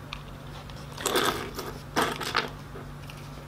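Small metal fittings clink against each other on a table.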